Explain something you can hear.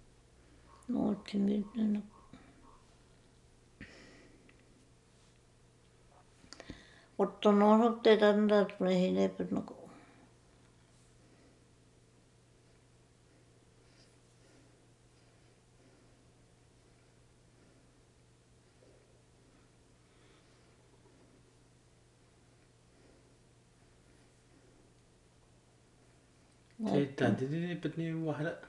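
An elderly woman speaks slowly and softly, close by.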